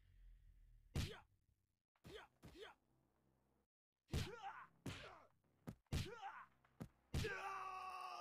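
Punches and kicks land with sharp smacking thuds.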